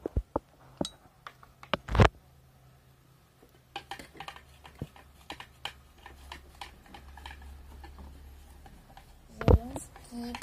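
A spoon clinks and scrapes against a plastic bowl.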